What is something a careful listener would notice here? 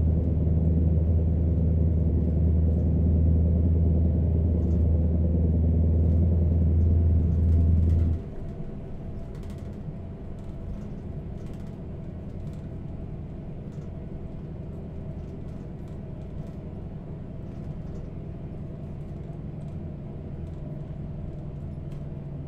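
A truck's diesel engine drones under load from inside the cab while cruising, then eases off.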